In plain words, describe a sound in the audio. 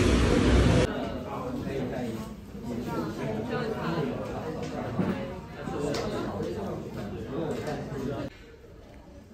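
Women talk with animation through a tablet's small speaker.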